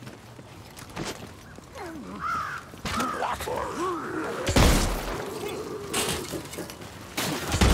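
A gun fires loud blasts now and then.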